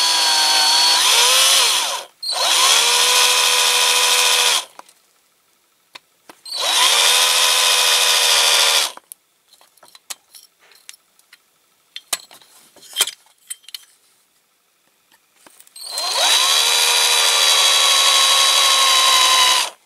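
An electric drill whines as it bores into metal, in bursts.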